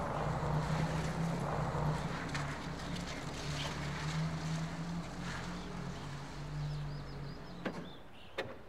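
A car engine rumbles as a car drives slowly around and pulls to a stop.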